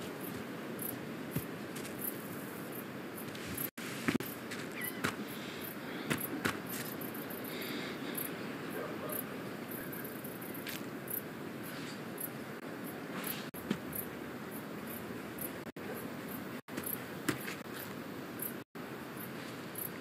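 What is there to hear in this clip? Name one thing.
Footsteps crunch on grass and a dirt path.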